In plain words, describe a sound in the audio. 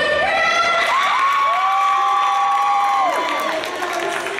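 A woman announces over a loudspeaker in a large echoing hall.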